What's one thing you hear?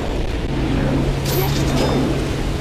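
A blade on a chain whips and clinks as it latches onto a ledge.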